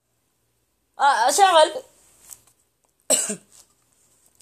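A young man sings loudly and close by, in short bursts.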